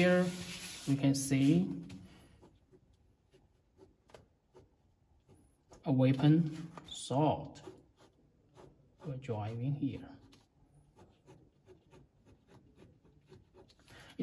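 A pen scratches lightly across paper.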